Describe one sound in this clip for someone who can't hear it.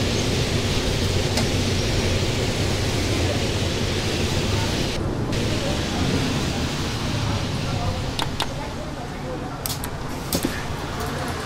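A bus engine rumbles low and steady as the bus drives and slows down.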